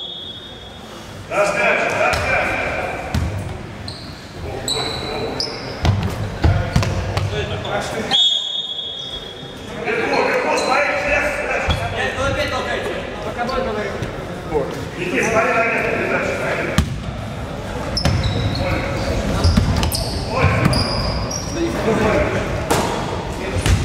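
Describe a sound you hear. Sneakers squeak on the floor.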